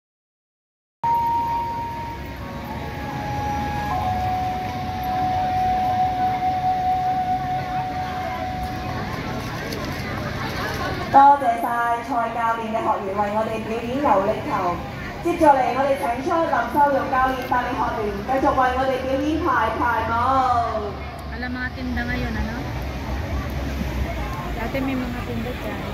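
Music plays loudly from outdoor loudspeakers.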